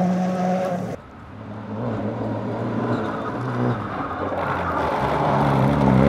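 A rally car engine growls and revs as the car approaches and speeds past.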